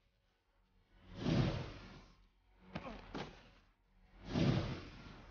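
Wind rushes past in loud whooshes during a long fall.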